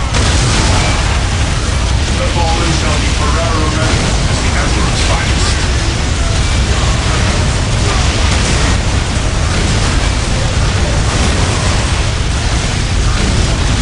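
Flamethrowers roar.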